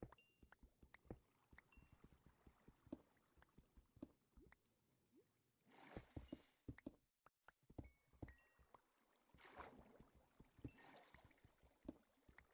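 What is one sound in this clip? Water splashes and flows.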